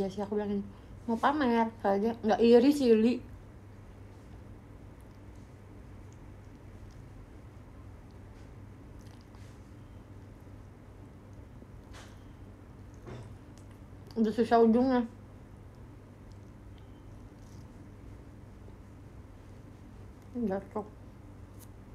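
A young woman talks softly and brightly close by.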